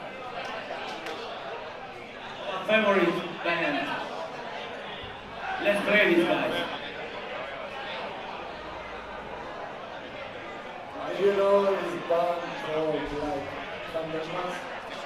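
A rock band plays live music in a large echoing hall.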